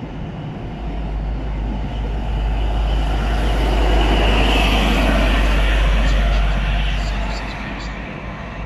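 A diesel locomotive roars loudly past, then fades.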